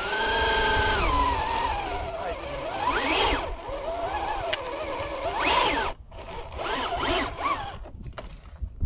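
A small electric motor whines and revs in rising and falling bursts.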